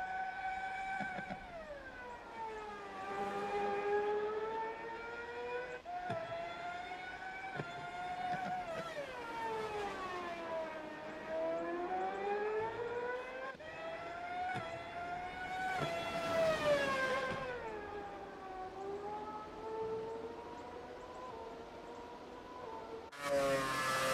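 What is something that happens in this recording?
A racing car engine whines, its pitch rising and falling as it shifts gears and brakes through corners.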